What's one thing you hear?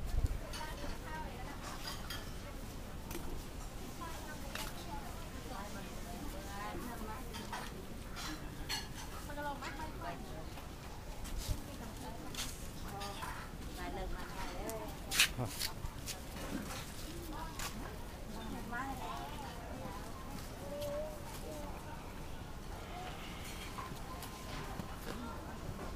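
Footsteps shuffle over a hard floor close by.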